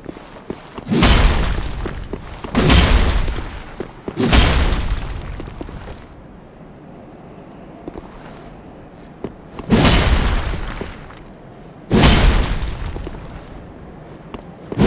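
Heavy blows crash down with a deep boom.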